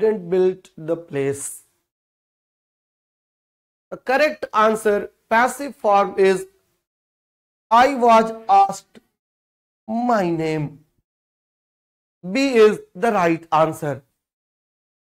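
A man speaks calmly into a microphone, explaining in short bursts.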